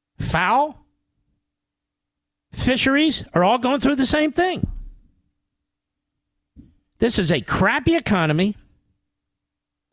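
A middle-aged man speaks into a microphone with animation, in short bursts.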